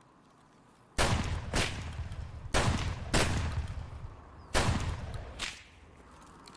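A shotgun fires several loud blasts in a row.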